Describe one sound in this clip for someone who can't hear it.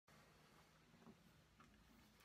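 An acoustic guitar's strings ring softly.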